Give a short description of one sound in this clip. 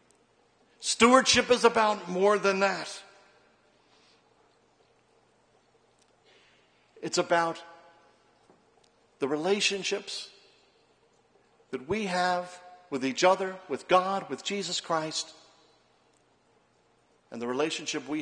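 A middle-aged man speaks calmly through a microphone, in phrases with pauses.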